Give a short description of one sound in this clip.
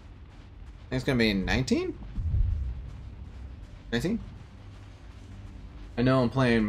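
A man speaks with animation into a nearby microphone.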